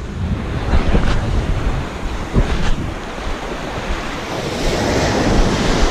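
Water splashes around wading feet.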